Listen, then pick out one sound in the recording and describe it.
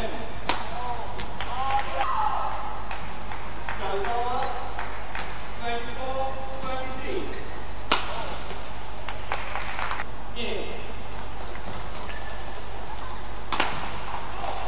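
A shuttlecock is smacked back and forth by rackets in a large echoing hall.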